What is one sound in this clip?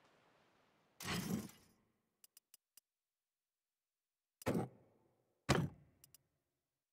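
Chain mail rustles and clinks in short bursts.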